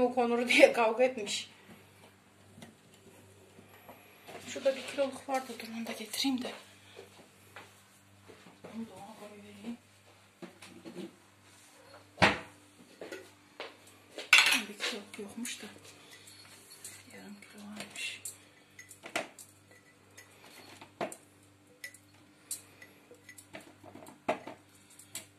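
Cucumbers knock and squeak against the glass of a jar.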